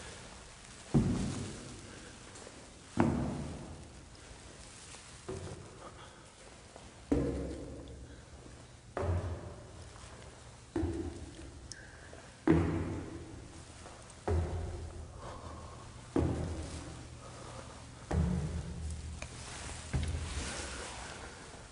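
Slow, heavy footsteps thud down hollow steps, ringing with a short echo.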